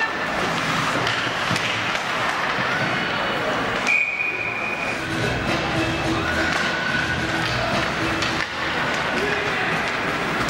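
Skates scrape and hiss across ice in an echoing rink.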